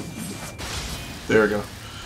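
A fiery blast bursts with a crackle.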